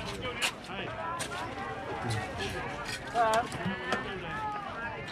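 A crowd of people chatter and call out nearby outdoors.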